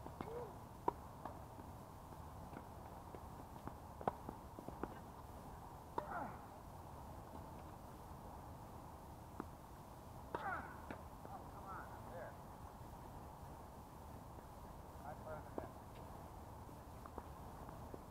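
Tennis balls are struck with rackets, with sharp pops outdoors.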